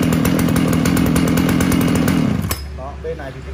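A chainsaw engine runs loudly, then cuts out.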